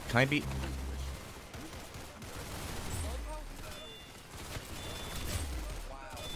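Gunshots fire in quick bursts in a video game.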